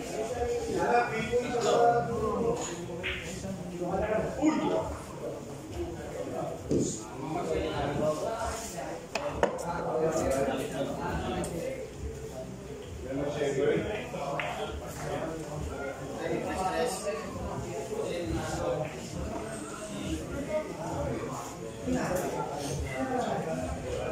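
Men talk nearby in a lively, overlapping way.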